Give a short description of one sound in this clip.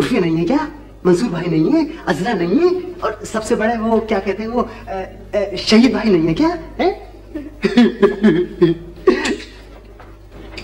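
A man talks with animation, heard up close.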